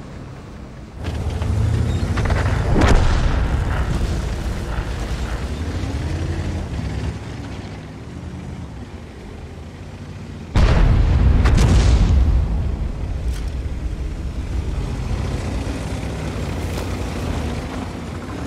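A heavy tank engine rumbles and roars as the tank drives.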